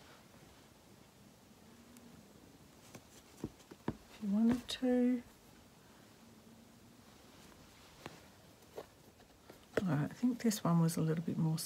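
Thread rasps softly as it is pulled through taut fabric.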